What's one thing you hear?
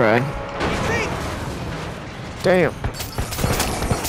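A truck crashes loudly onto the road.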